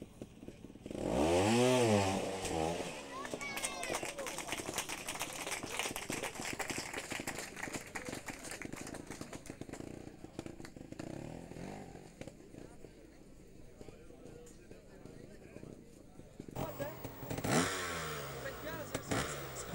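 A motorbike engine revs up and down nearby.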